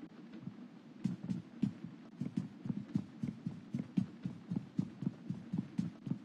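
Boots thud on a wooden floor at a run.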